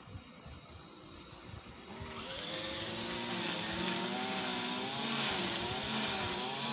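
Leaves rustle in a breeze outdoors.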